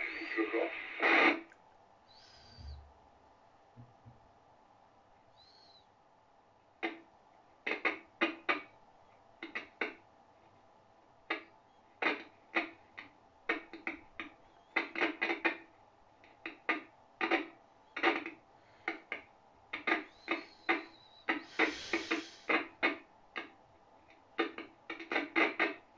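A radio set gives out short, choppy bursts of sound through its small speaker.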